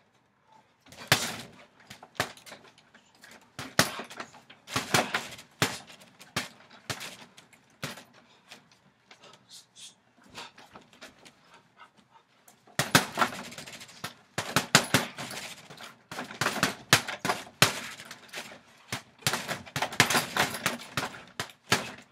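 Feet shuffle and thump on a wooden deck.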